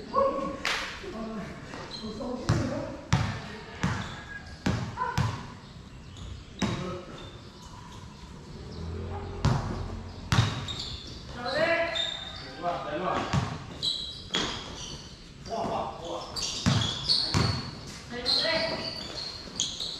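A basketball bounces on a hard court, with its thuds echoing under a roof.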